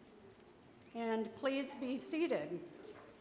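A middle-aged woman sings loudly through a microphone.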